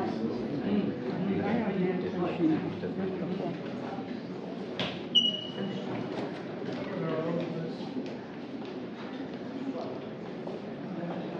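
A crowd of men and women murmurs and chatters nearby in an echoing hall.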